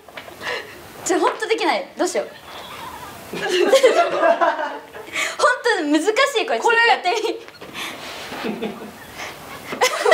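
A young woman talks with animation into a microphone.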